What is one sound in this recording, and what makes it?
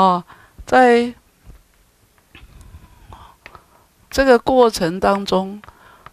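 An elderly man speaks slowly and calmly through a headset microphone.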